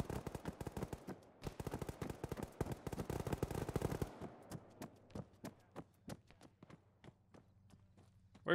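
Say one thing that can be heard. Footsteps run quickly on a hard floor, echoing slightly.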